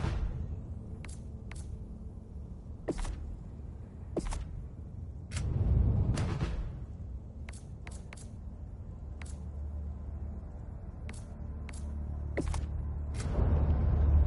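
Menu clicks tick sharply, one after another.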